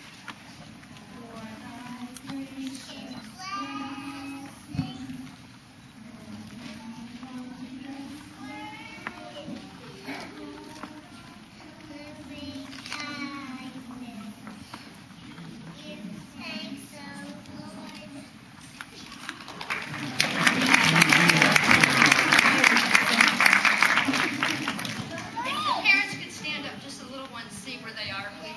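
A young girl speaks softly into a microphone, heard through a loudspeaker in an echoing hall.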